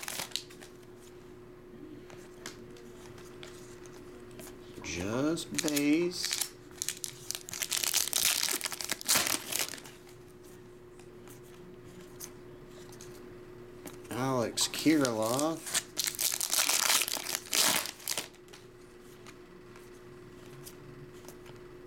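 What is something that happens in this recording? Trading cards slide against each other as they are shuffled in the hands.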